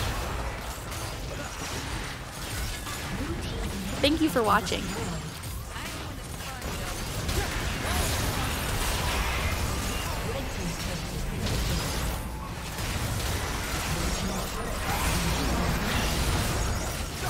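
Fantasy battle sound effects whoosh, crackle and clash throughout.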